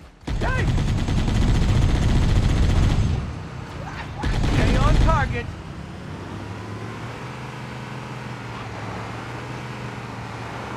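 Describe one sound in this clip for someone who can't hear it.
A vehicle engine rumbles as it drives over sand.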